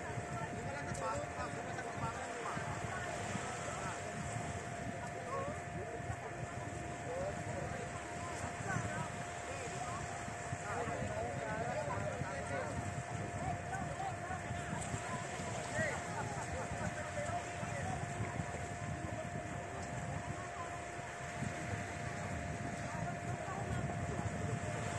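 A group of young people chat nearby outdoors.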